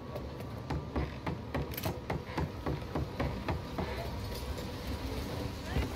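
Footsteps run quickly.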